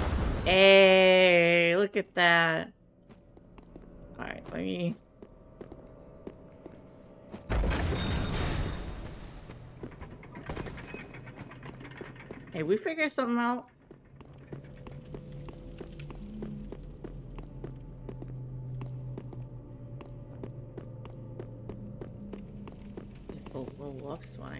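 Footsteps run across stone floors and up stone stairs.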